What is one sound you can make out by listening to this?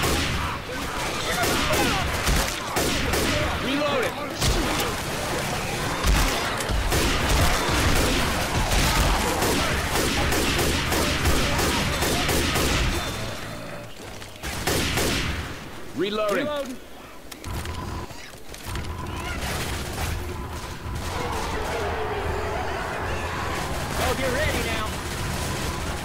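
Zombies snarl and shriek.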